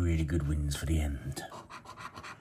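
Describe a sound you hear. A man speaks briefly, close to a microphone.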